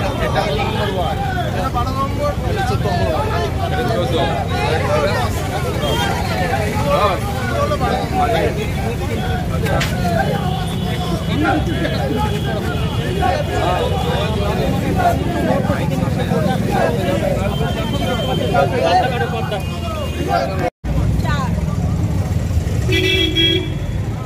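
A crowd of men and women chatter and shout nearby outdoors.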